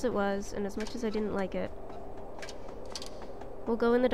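Light footsteps tap on wooden ladder rungs.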